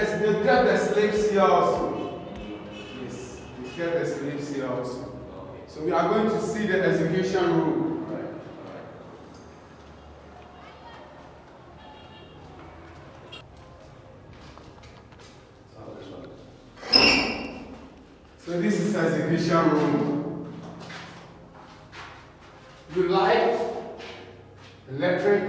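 A young man talks with animation in an echoing room.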